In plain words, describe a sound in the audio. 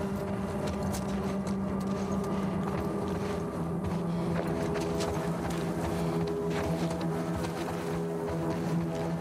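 Footsteps patter quickly across a hard floor.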